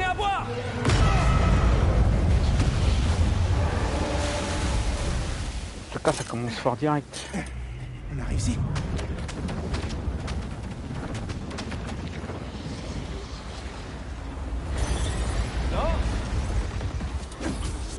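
A huge cloud of sand crashes down with a deep roar.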